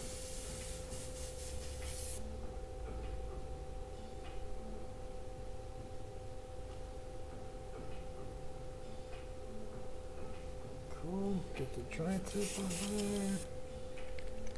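An airbrush hisses in short bursts.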